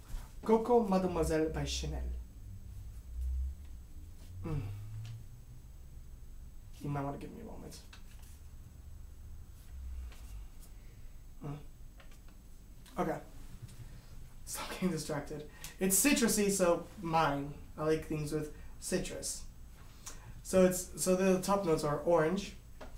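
A young man talks calmly and closely into a microphone, with pauses.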